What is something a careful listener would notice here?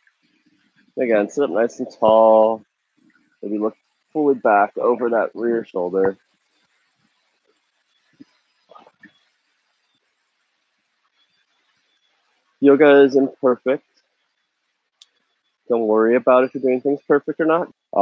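A man speaks calmly and close by, in pauses.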